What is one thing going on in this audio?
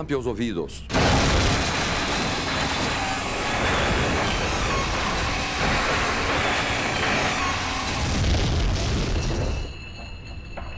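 A heavy engine roars loudly and steadily.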